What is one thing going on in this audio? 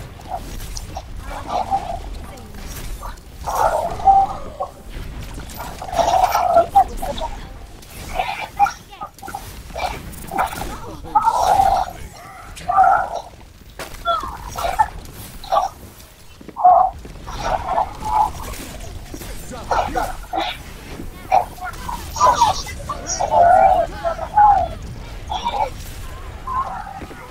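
Energy weapons fire in short, sharp bursts.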